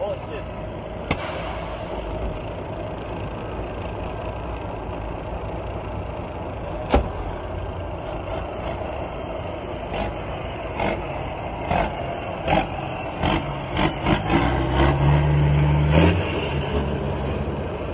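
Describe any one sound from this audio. A truck engine rumbles and idles nearby.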